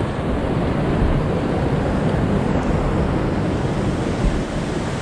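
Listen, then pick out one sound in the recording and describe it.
Water rushes and splashes over rocks close by.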